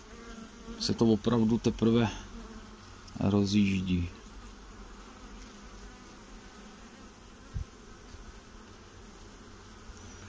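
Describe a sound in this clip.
Bees buzz in a swarm close by.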